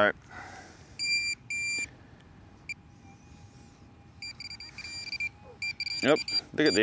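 A metal detector beeps in short bursts.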